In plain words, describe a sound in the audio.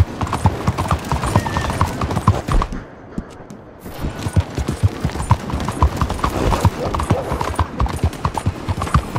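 Horse hooves clop quickly on cobblestones.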